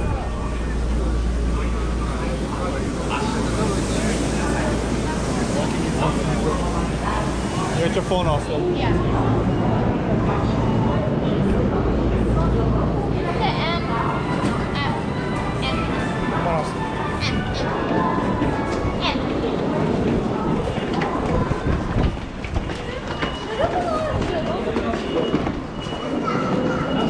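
A crowd murmurs and chatters in an echoing hall.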